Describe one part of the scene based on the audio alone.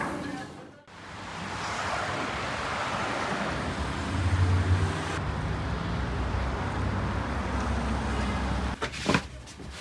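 Traffic hums and tyres hiss on a wet road outdoors.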